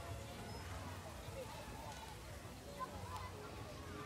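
Men and women chat nearby outdoors.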